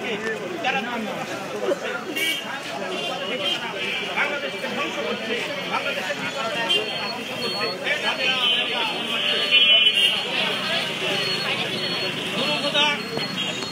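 A crowd of men talks and murmurs close by.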